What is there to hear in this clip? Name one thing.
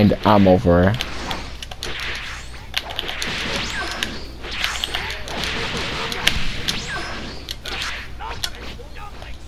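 Energy blasts whoosh and crackle in a fight.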